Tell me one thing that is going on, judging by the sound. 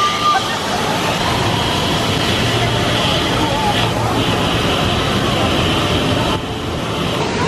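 A ride's machinery hums steadily outdoors.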